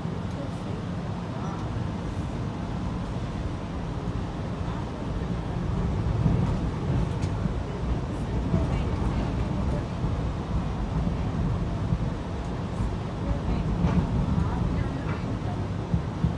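A streetcar rumbles steadily along its rails.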